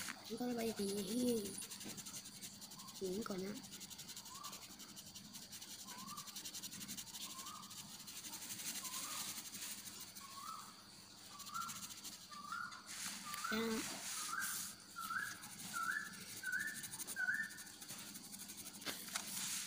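A coloured pencil scratches across paper.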